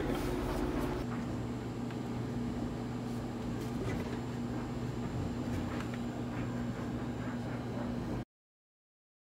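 A small electric fan hums steadily.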